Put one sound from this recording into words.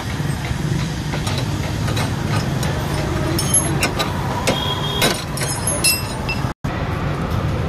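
Metal tools clink and scrape against metal parts.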